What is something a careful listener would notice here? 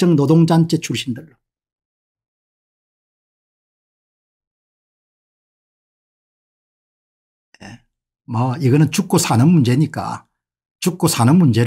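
A middle-aged man speaks with animation close to a microphone, pausing in between.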